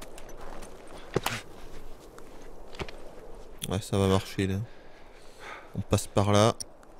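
Footsteps crunch softly on snow.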